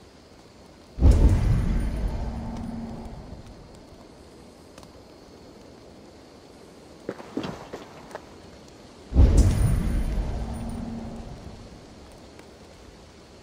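A deep booming whoosh swells and slowly fades.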